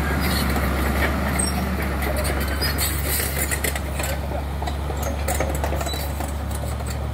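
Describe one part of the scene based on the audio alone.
A heavy diesel engine idles with a steady low rumble nearby.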